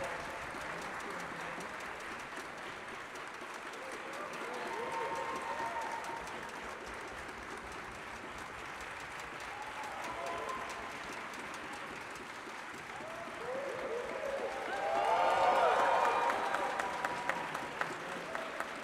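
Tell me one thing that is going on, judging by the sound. An orchestra plays softly in a large echoing hall, swelling louder toward the end.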